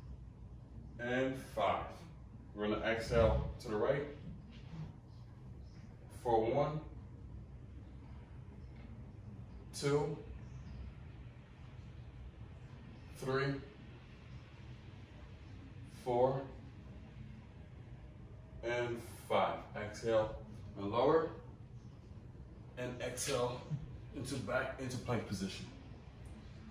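A man speaks calmly, close by, in short phrases with pauses.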